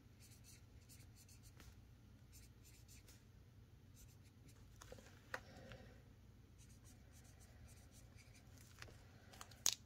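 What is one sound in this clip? A marker squeaks faintly while writing on paper.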